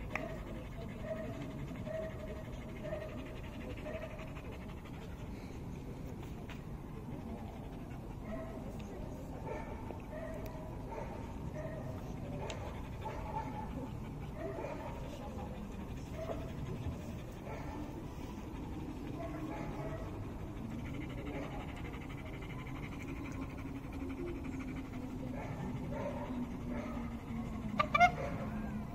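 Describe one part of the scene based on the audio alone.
A dog pants steadily nearby.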